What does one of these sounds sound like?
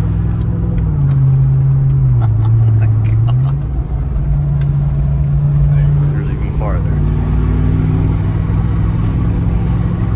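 Tyres roll on a road with a steady rumble.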